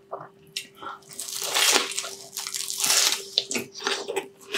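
A man bites into crispy fried food with a loud crunch.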